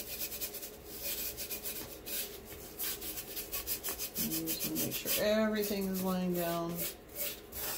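Fine glitter softly hisses and patters as it is sprinkled onto paper.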